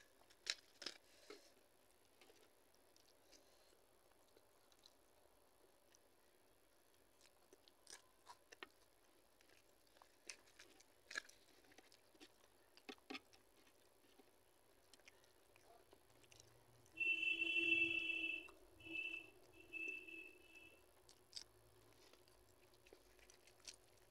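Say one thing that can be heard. Hands tear a flatbread apart.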